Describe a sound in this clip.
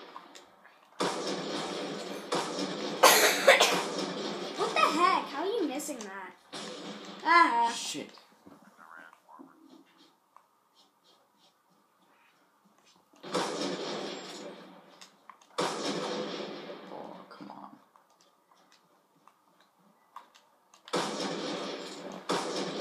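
Rapid gunfire and explosions from a video game play through television speakers in loud bursts.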